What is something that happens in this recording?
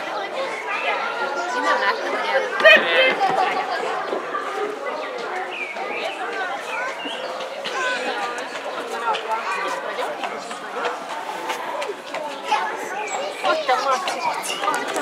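A crowd of onlookers talks and shouts excitedly nearby.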